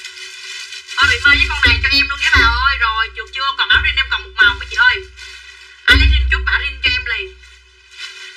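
A young woman speaks loudly and with animation close by.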